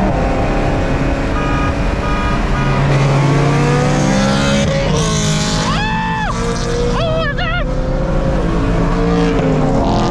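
Powerful car engines roar and rev loudly close by.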